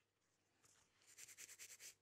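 A pad rubs briskly against a fingernail in short scratchy strokes.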